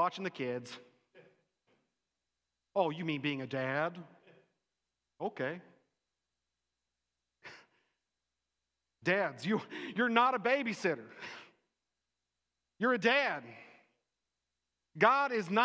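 A middle-aged man speaks with animation into a microphone, pausing often.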